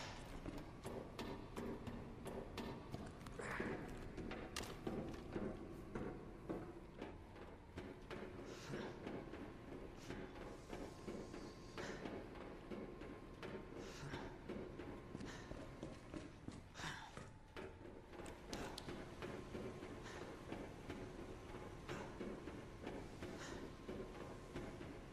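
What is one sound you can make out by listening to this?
Footsteps clang on a metal walkway.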